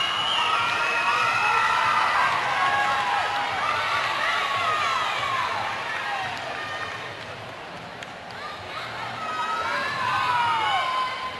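A crowd of young women shout and cheer loudly in a large echoing hall.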